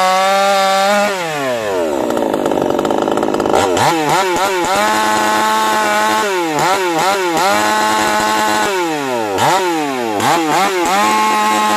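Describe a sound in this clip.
A chainsaw engine drops to idle and revs up again several times.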